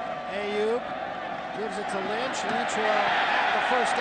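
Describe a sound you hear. Football players' pads and helmets clash in a tackle.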